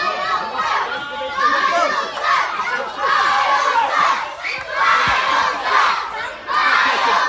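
A crowd of children and adults shouts and cheers loudly nearby.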